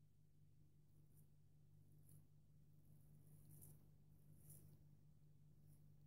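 A razor scrapes through shaving cream on stubble in short strokes.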